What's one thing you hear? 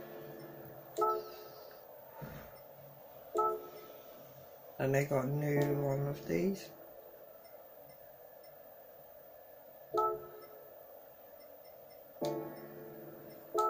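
Short electronic menu chimes sound from a television speaker.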